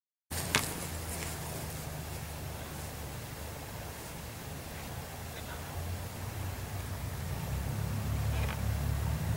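A swing creaks faintly as it sways.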